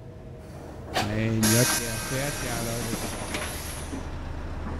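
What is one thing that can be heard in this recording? Bus doors hiss and open.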